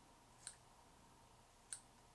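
A pair of scissors snips once.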